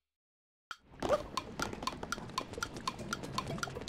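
Quick light footsteps patter steadily.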